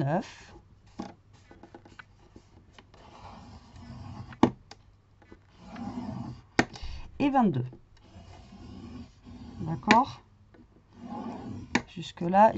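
A bone folder scrapes along a sheet of card.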